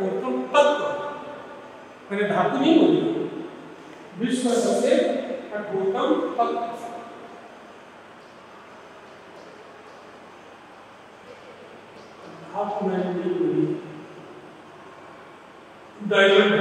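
A man speaks calmly in a slightly echoing room, with pauses between phrases.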